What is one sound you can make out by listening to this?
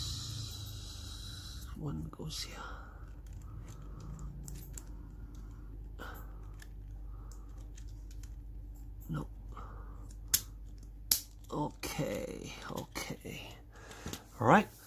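Small plastic parts click and snap as they are fitted together by hand.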